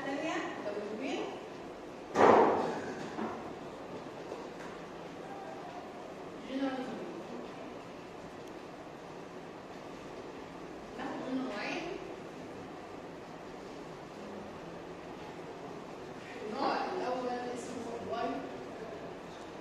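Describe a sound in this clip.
A woman speaks calmly in short phrases, with pauses.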